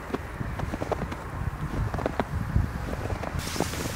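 Boots crunch through deep snow with slow steps.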